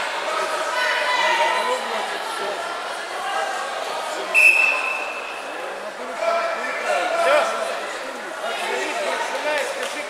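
A man speaks loudly into a microphone, heard through loudspeakers in a large echoing hall.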